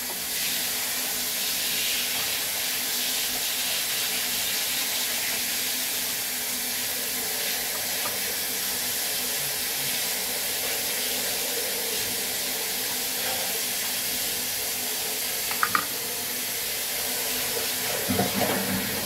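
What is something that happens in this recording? Water sprays from a shower head in a steady hiss.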